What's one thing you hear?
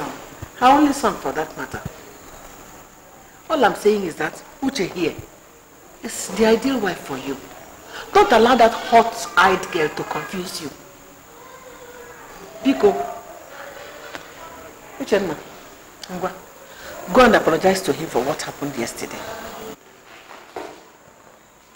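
An older woman speaks with animation nearby.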